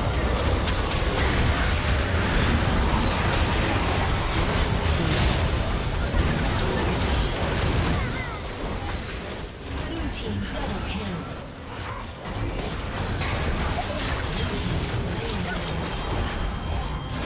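Game spell effects and combat sounds clash and burst rapidly.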